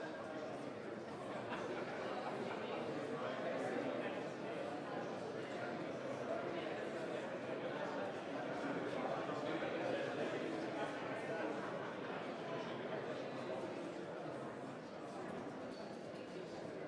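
Many voices murmur and chatter throughout a large room.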